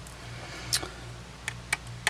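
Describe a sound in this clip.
A small screwdriver scrapes against a metal screw.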